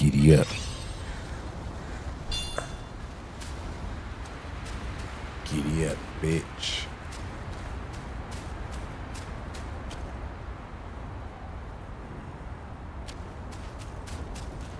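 Footsteps crunch on dry ground and grass.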